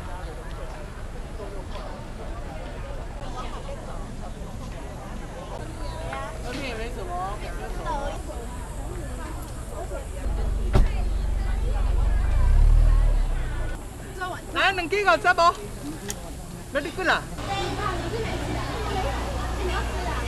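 Men and women chatter nearby outdoors.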